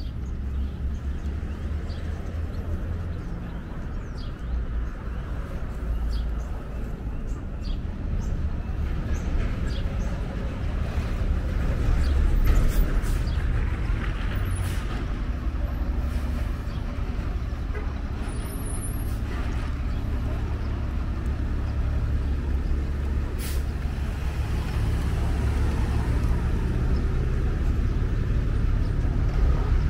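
Traffic rumbles steadily along a city street outdoors.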